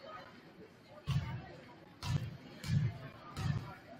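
A basketball bounces on a wooden court.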